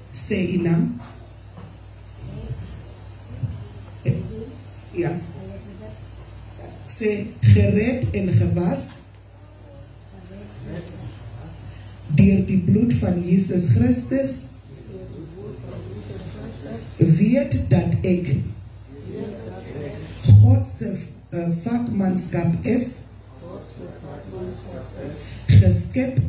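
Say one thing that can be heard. A woman speaks through a microphone and loudspeakers in a reverberant room.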